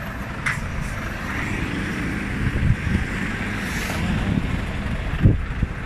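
A heavy truck engine rumbles close by.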